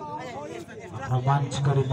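A young man shouts loudly nearby.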